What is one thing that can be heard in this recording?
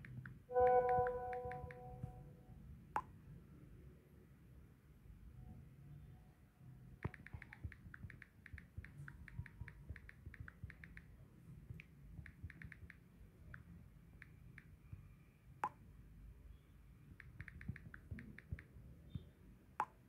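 Fingers tap quickly on a phone's touch keyboard with soft clicks.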